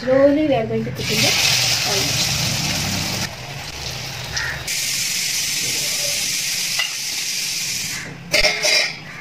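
Hot oil sizzles and crackles in a pan.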